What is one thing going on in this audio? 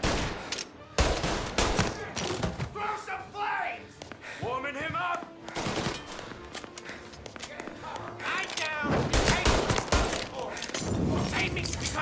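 Pistol shots ring out loudly, echoing through a large hall.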